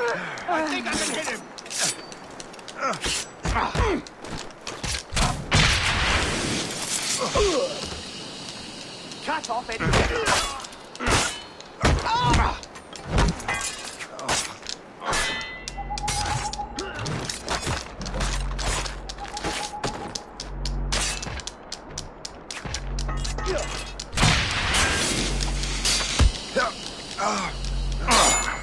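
Swords clash and strike in a close fight.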